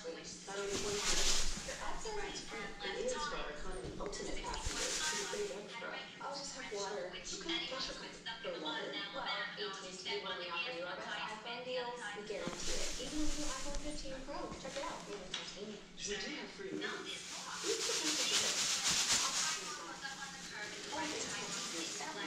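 A plastic pom-pom rustles as it is shaken.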